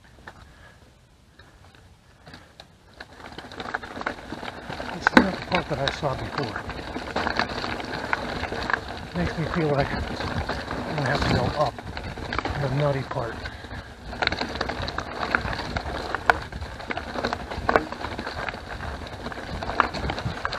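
Bike tyres roll and crunch over a dirt trail.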